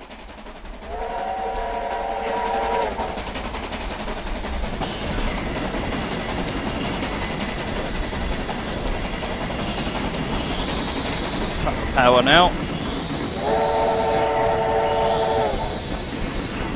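A steam locomotive whistle blows twice in long chords.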